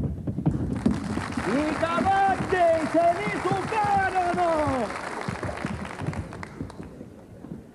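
Hooves clop on a wooden stage floor.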